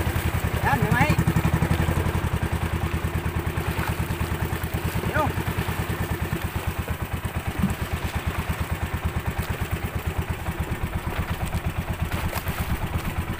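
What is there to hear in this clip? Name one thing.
A boat engine throbs with a fast, steady beat.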